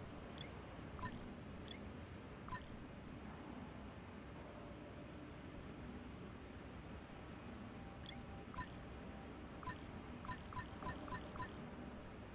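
Short electronic beeps blip now and then.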